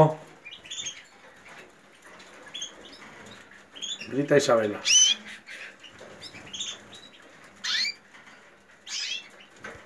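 Canaries chirp and trill close by.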